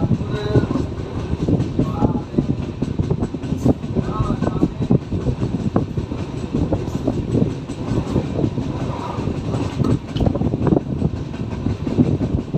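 A train rumbles along the rails at speed, its wheels clattering over the joints.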